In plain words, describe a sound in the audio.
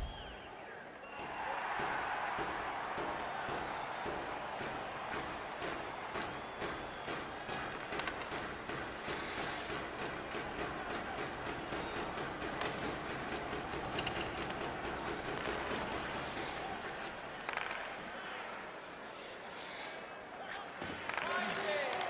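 Skates scrape across ice.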